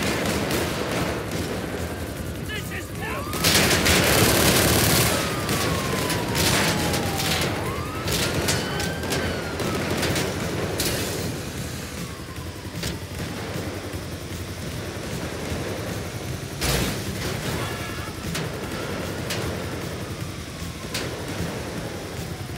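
A heavy truck engine rumbles steadily while driving.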